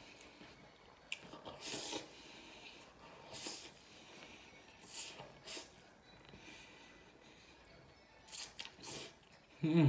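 A man slurps noodles loudly.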